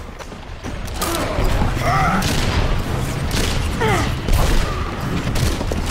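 Gunshots and blasts ring out in a battle.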